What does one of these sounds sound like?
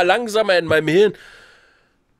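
A man speaks loudly and with animation into a microphone over an online call.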